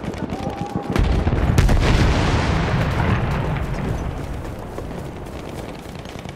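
An explosion booms nearby and its rumble slowly fades.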